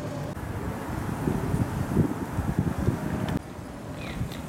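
Cars drive past on a street nearby.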